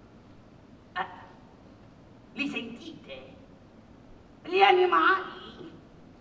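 A man speaks in short, lively bursts on a stage, with a slight echo.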